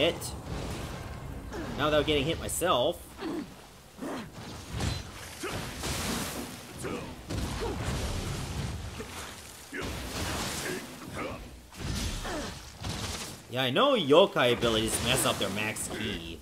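Weapons swish and clash in a fight.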